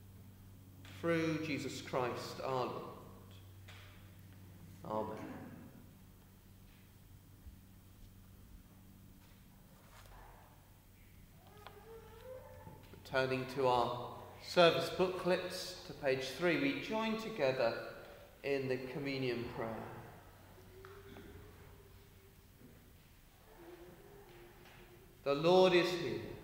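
A man speaks calmly into a microphone in a large echoing hall, pausing between phrases.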